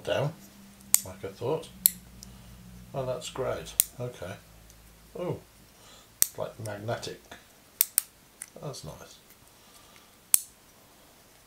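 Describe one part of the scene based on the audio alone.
Small plastic parts click and snap together.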